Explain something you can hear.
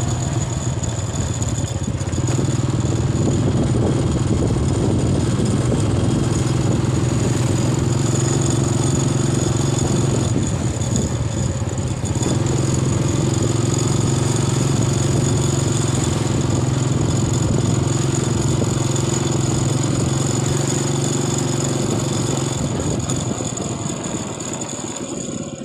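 A motorcycle engine hums steadily close by as it rides along a road.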